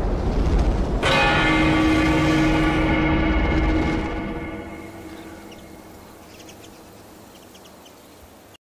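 A large bell rings out loudly and slowly fades away.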